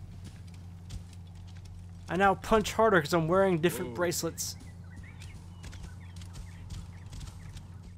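A horse gallops with hooves thudding on sand.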